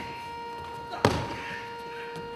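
A body thuds onto a floor mat.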